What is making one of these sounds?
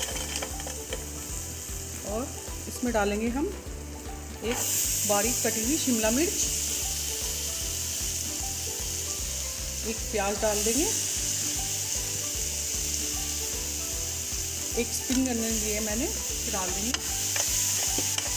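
A metal spoon scrapes and clinks against a pan.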